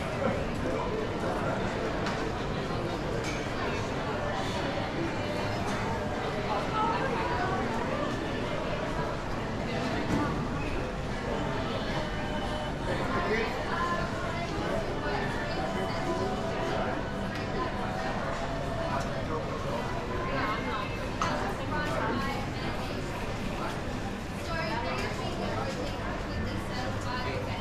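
A crowd of shoppers murmurs and chatters in a busy indoor hall.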